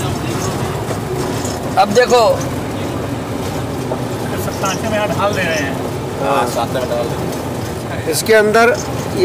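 A vehicle engine rumbles steadily while driving over a rough dirt road.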